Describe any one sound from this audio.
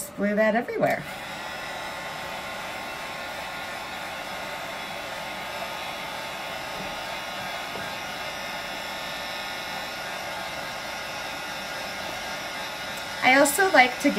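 A heat gun blows with a steady whooshing hum.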